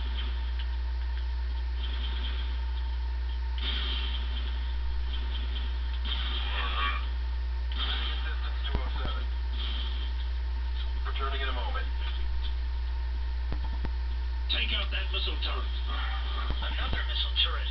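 Gunshots from a video game fire in bursts through a small speaker.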